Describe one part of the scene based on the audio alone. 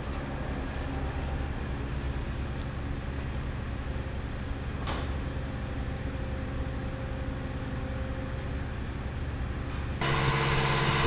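A loader engine idles with a steady low rumble.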